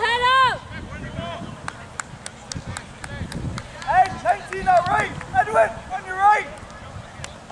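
Young men shout to each other in the distance across an open field.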